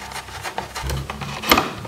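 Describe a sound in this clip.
A screwdriver clicks against metal.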